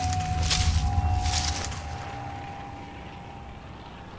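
Leafy bushes rustle as someone crawls through them.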